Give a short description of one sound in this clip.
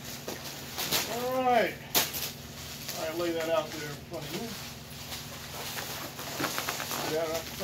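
Plastic wrapping crinkles and rustles.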